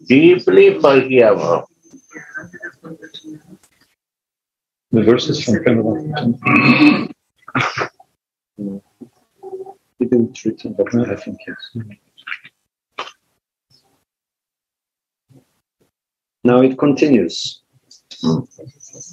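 An elderly man speaks calmly, heard through an online call.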